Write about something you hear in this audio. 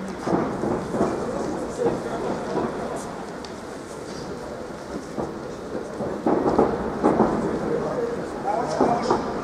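Fighters' punches and kicks land with dull thuds.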